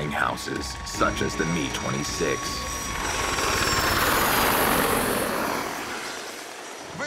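A helicopter's rotor roars as it flies overhead.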